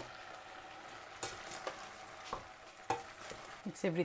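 A wooden spoon stirs and scrapes inside a metal pot.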